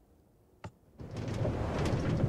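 A minecart rolls and rattles along rails.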